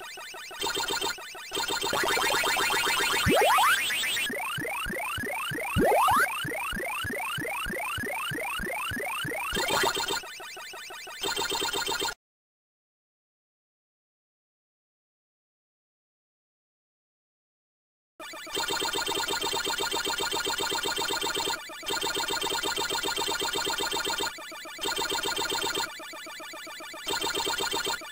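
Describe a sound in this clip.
Electronic blips chirp rapidly as a game character eats dots.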